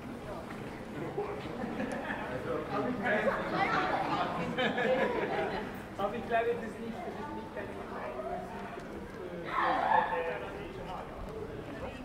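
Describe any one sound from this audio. Several men and women talk casually nearby outdoors as they pass.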